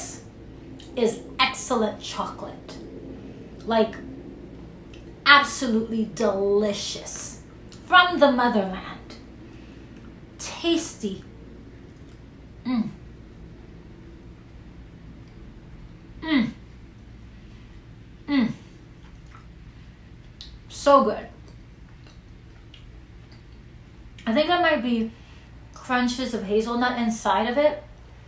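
A young woman speaks expressively close to a microphone, in short bursts with pauses.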